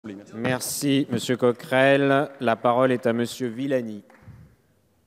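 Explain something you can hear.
A man speaks clearly into a microphone, announcing formally.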